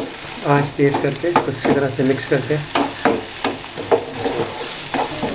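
Food sizzles softly in a hot pan.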